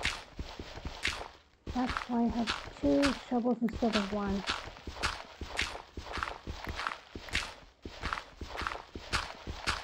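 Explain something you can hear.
Blocks of stone crunch rhythmically as they are dug out.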